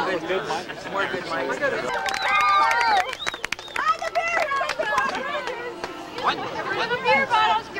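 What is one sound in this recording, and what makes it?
Several young men and women chat and laugh close by, outdoors.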